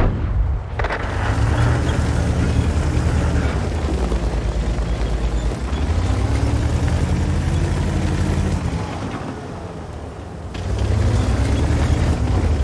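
A tank engine rumbles and revs as the tank drives.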